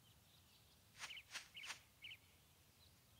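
A magical shimmering chime sounds.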